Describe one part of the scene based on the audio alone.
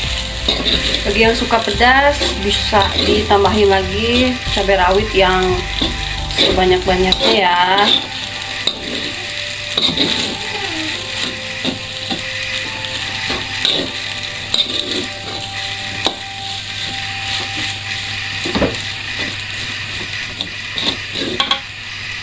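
A metal spatula scrapes and stirs rice in a pan.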